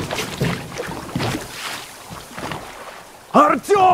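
An oar dips and paddles through water.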